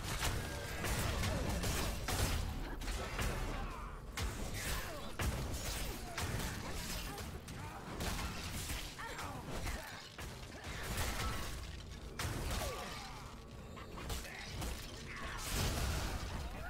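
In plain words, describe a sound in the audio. Weapons strike and magic blasts boom in a fast fight.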